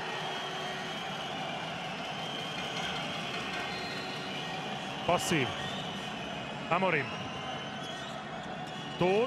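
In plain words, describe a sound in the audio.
A large crowd cheers and chants in an echoing indoor arena.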